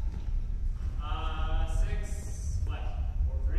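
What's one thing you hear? A young man calls out loudly.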